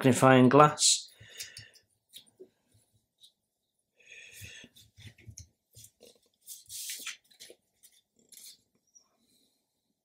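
Small plastic parts click and tap softly as hands handle them.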